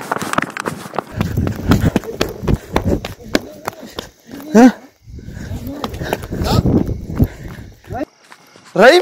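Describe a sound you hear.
Footsteps crunch on dry, stony ground.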